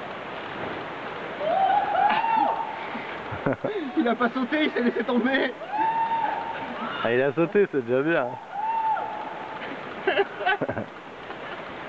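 A person screams far off while falling and bouncing on a rope.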